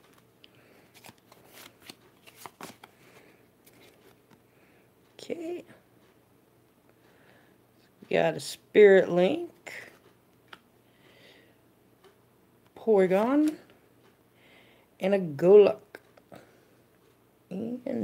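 Cards slide and flick against each other.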